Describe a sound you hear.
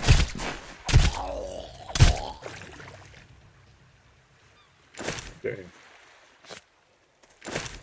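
A blade strikes a body with sharp, heavy thuds.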